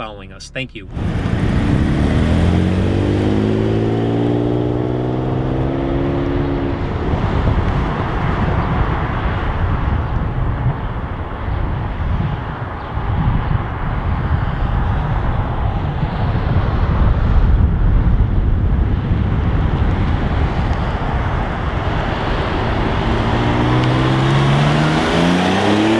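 A sports car engine revs and roars as the car accelerates.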